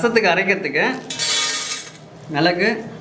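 Peppercorns pour and rattle into a metal tray.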